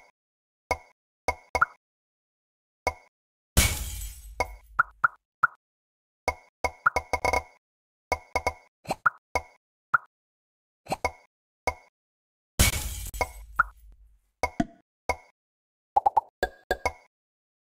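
Short bright electronic pops and chimes sound again and again.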